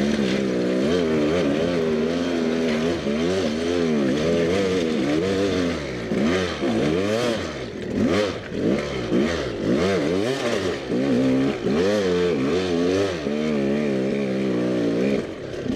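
A dirt bike engine revs up and down, its pitch rising and falling.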